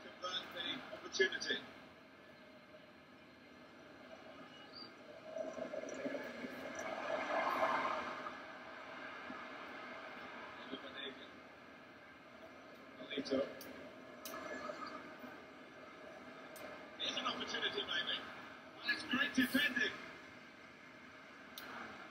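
Stadium crowd noise from a football video game plays through a television speaker.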